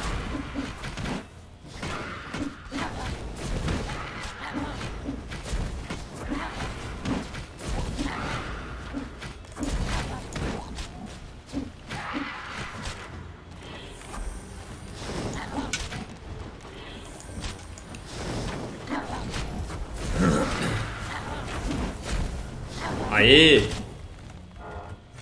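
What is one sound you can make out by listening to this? Blades clash and strike in a busy fight.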